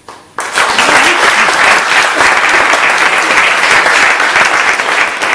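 A small audience claps loudly and steadily.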